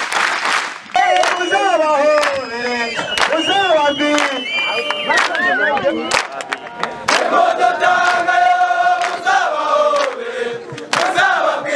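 Men clap their hands.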